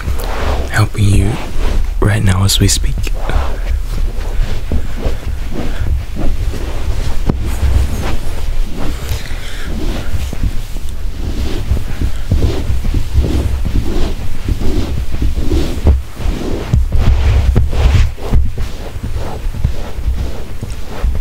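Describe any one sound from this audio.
Hands rub against skin with soft, repeated sounds.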